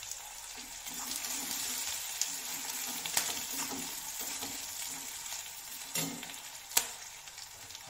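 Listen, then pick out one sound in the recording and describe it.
A metal spatula scrapes and clinks against a steel wok.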